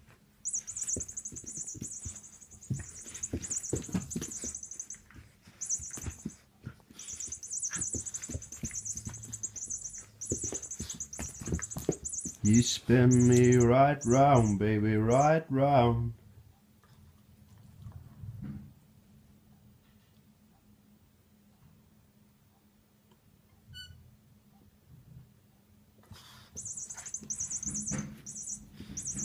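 A puppy's paws scuffle on a rug.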